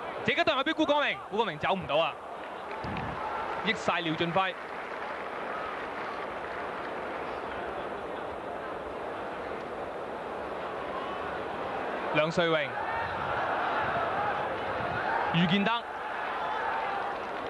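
A large stadium crowd roars steadily in the distance.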